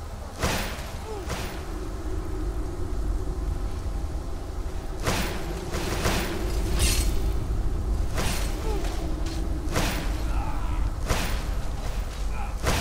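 Crackling electric bolts zap in sharp, repeated bursts.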